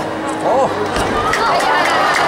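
A gymnast lands a dismount on a mat with a thud.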